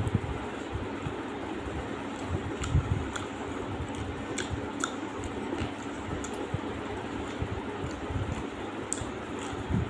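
A man chews crunchy food loudly and wetly close to the microphone.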